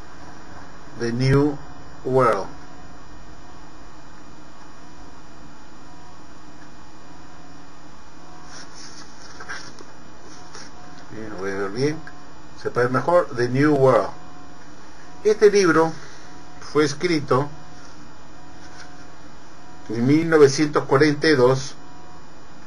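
An older man speaks calmly and close to a microphone, in short bursts.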